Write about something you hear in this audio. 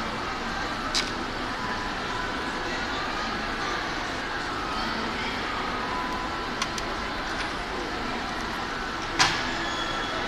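Small plastic parts click and tap on a table.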